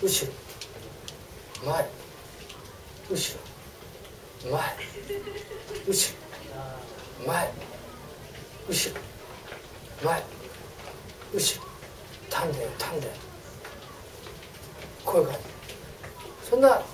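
A middle-aged man speaks in short bursts with pauses, through a small clip-on microphone.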